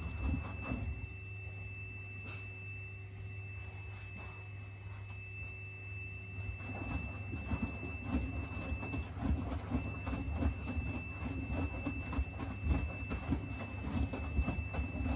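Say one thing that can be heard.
A washing machine hums steadily.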